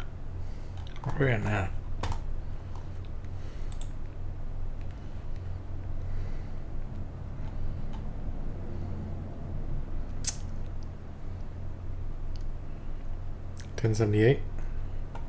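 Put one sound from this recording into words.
A man speaks briefly and quietly into a close headset microphone.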